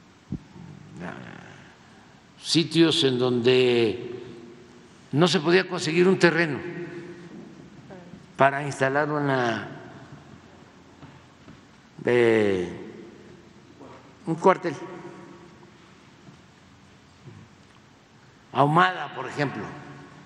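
An elderly man speaks slowly and calmly into a microphone, in a reverberant hall.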